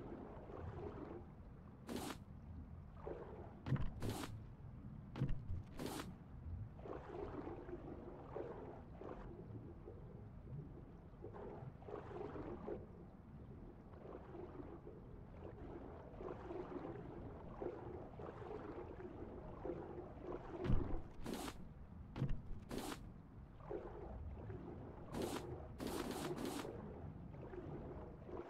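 A low, muffled underwater rumble goes on throughout.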